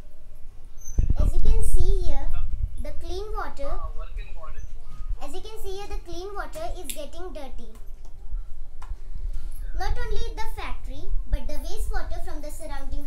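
A young girl speaks close by, explaining calmly.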